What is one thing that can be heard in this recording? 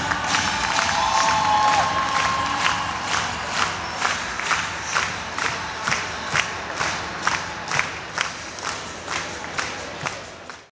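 A large crowd claps along in a steady rhythm in a big echoing hall.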